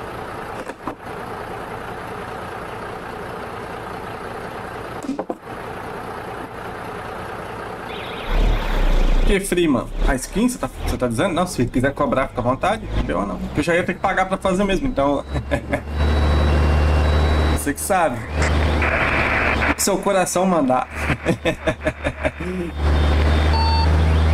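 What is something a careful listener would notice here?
A truck engine rumbles steadily at idle.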